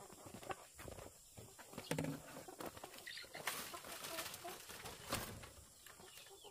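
Plastic buckets bump and clatter.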